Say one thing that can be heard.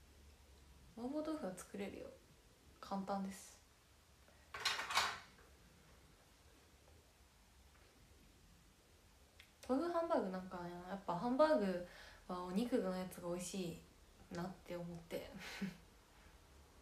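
A young woman talks calmly and close to the microphone, in short bursts.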